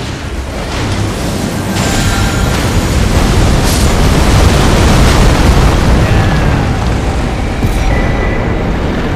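Magic blasts roar and crackle loudly.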